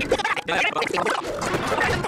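A cartoon man yells angrily.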